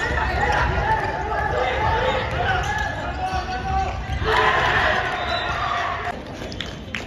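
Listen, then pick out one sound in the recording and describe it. Sneakers squeak on a wooden court in an echoing hall.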